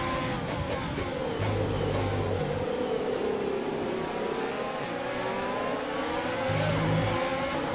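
Other racing cars' engines roar close by.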